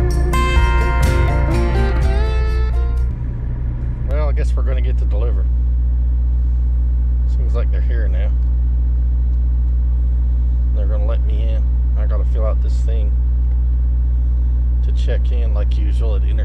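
A truck engine hums low and steadily.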